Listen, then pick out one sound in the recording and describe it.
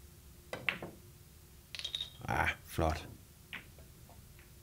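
Billiard balls click against each other on a table.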